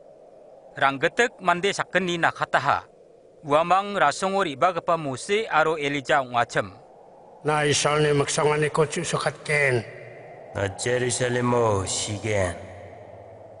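A man speaks close to the microphone.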